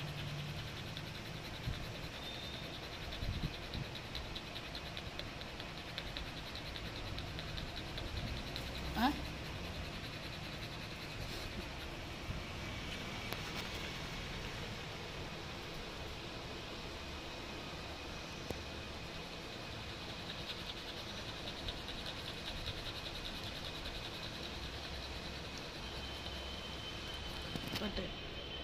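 A Labrador pants with its tongue out.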